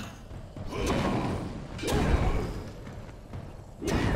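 A fireball explodes with a loud boom.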